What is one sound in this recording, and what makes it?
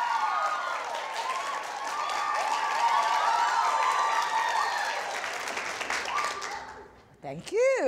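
A crowd of young women laughs and cheers loudly.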